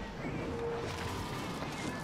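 A game character splashes through water.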